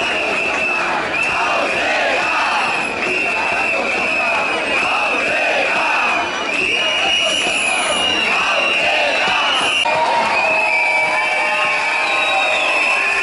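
A large crowd cheers and sings loudly outdoors.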